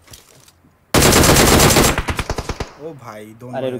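A rifle fires a rapid, loud burst of shots.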